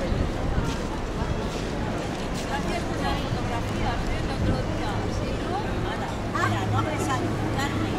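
Elderly women talk casually close by.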